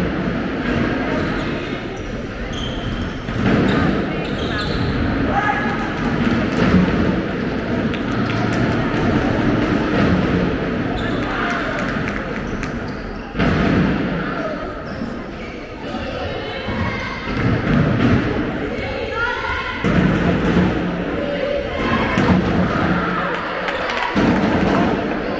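A handball bounces on a hard floor in an echoing hall.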